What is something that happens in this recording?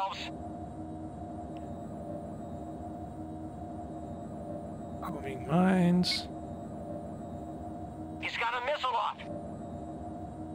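A spacecraft engine hums with a low, steady drone.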